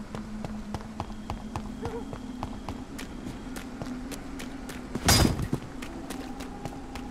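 Footsteps run quickly over ground.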